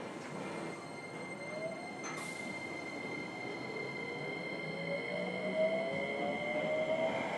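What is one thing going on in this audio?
An electric train's motors whine, rising in pitch as the train speeds up.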